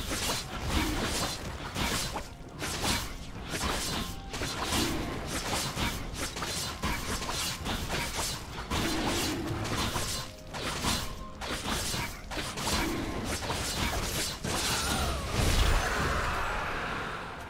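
Game spell effects and attacks crackle and thump in quick bursts.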